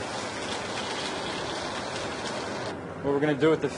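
Food sizzles in a hot frying pan.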